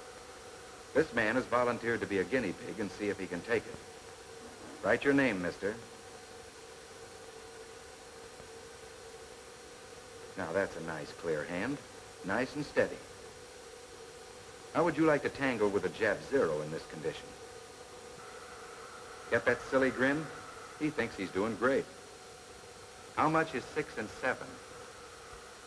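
A man speaks calmly, heard through an old, hissy recording.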